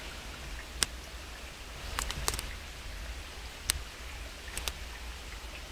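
Leafy stems snap and rustle as a hand picks them.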